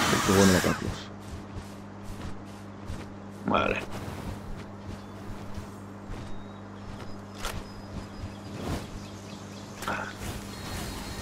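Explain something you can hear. Large wings flap with steady beats.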